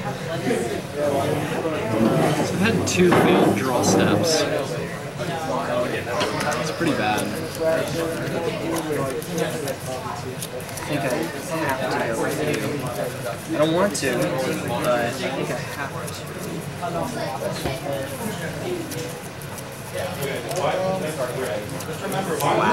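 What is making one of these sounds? Cards are shuffled softly by hand.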